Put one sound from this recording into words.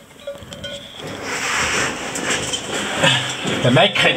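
Clothing rustles and scrapes against a metal pipe wall, with a hollow echo.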